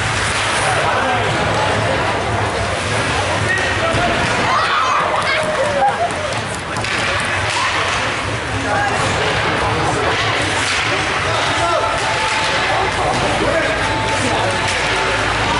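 Spectators chatter in an echoing ice rink.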